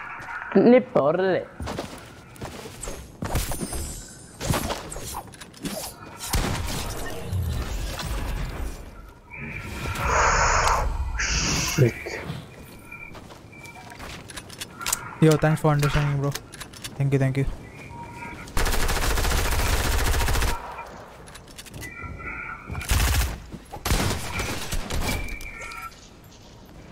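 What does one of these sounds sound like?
Gunshots crack in short, sharp bursts.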